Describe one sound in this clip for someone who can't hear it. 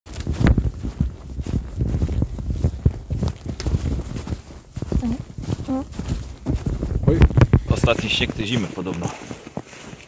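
Footsteps crunch on frozen ground.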